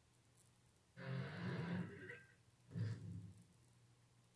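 Game music plays briefly through a television speaker.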